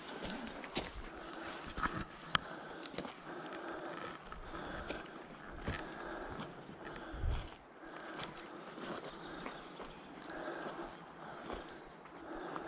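Footsteps crunch through dry grass and leaves.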